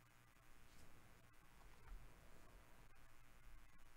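A hard plastic card case is turned over in gloved hands.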